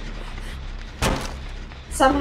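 A body thumps hard against a window frame.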